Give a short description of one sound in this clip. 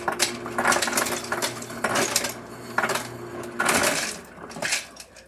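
A refrigerator dispenser motor hums steadily.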